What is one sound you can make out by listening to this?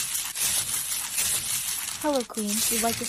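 Foam beads crackle and slime squelches under a hand.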